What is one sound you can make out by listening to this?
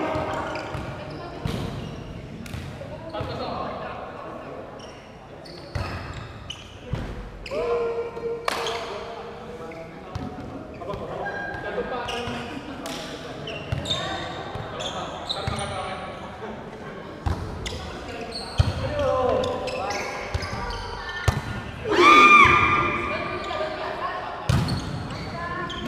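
A basketball bounces on a hard court in a large echoing hall.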